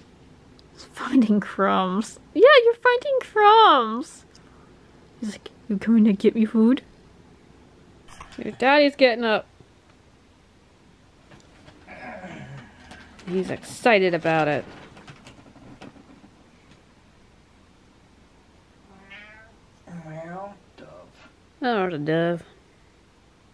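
A cat meows loudly, again and again.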